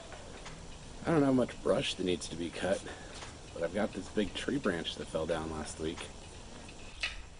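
A man speaks calmly and close by, outdoors.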